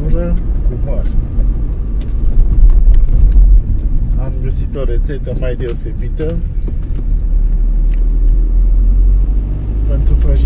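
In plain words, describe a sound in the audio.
A man talks with animation close by, inside a car.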